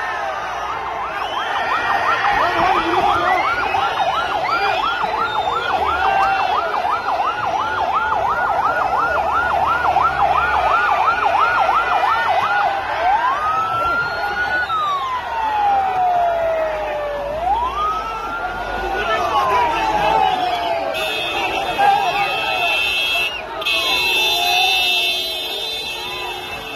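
An ambulance siren wails, first in fast whoops and then in long rising and falling sweeps.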